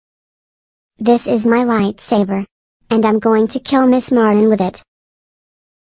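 A synthetic child's voice speaks, close up.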